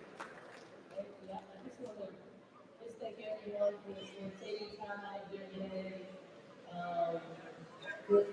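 A woman speaks through a microphone over loudspeakers in an echoing hall.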